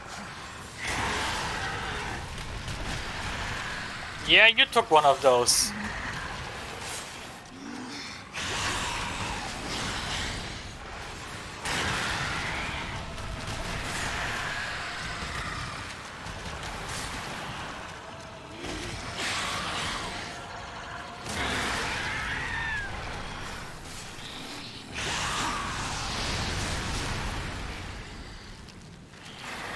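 Rain pours steadily.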